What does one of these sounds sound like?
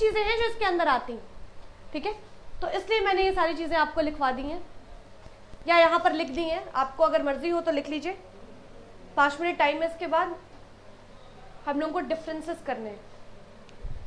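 A young woman speaks calmly and clearly close to a microphone.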